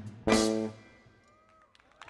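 A jazz trio ends a tune on a final chord that rings out and fades.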